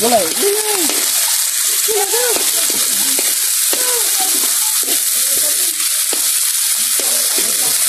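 A metal spoon scrapes and clinks against a wok.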